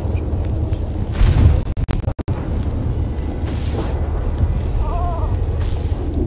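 Flames roar loudly with a deep rumble.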